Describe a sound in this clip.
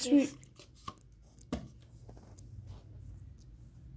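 A plastic cup is set down on a table with a light knock.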